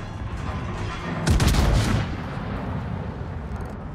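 Heavy ship guns fire with loud, deep booms.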